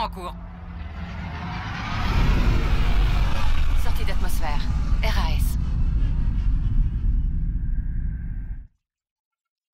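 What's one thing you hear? A spacecraft engine roars with a deep, steady rumble, then cuts off abruptly.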